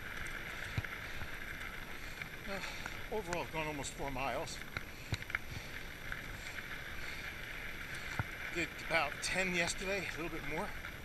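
Bicycle tyres roll over a dirt trail.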